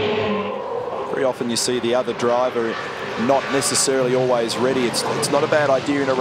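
Race car engines rev up and drop as the cars shift gears.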